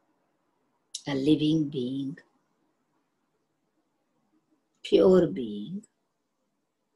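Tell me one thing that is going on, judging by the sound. An elderly woman speaks calmly through an online call, in short phrases.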